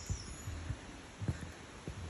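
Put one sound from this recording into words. Footsteps thud softly on a dirt forest trail.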